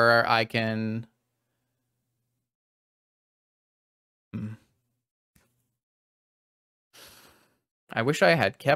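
A young man exclaims with animation into a close microphone.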